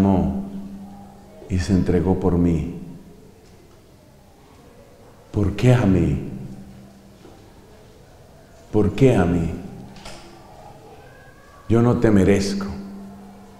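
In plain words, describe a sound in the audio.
A middle-aged man speaks calmly into a microphone in short phrases, with pauses.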